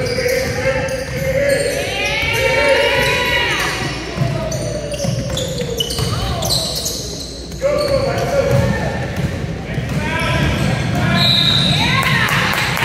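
Sneakers squeak sharply on a hardwood floor in an echoing gym.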